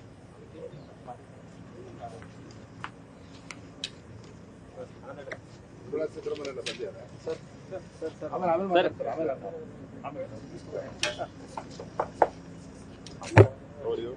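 Several men talk close by, outdoors.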